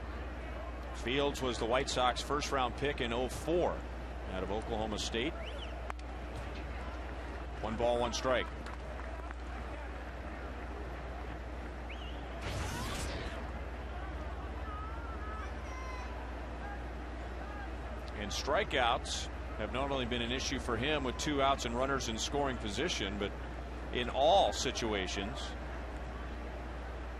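A crowd murmurs in a large outdoor ballpark.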